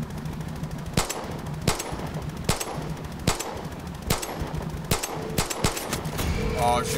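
A pistol fires a series of sharp shots.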